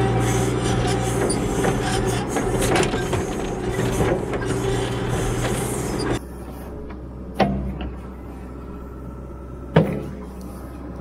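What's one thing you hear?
A backhoe engine rumbles and clatters nearby.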